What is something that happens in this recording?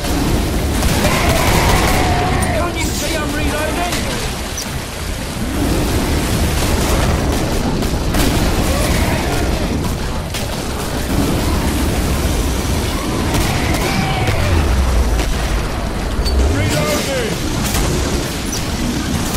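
A flamethrower roars in steady bursts of fire.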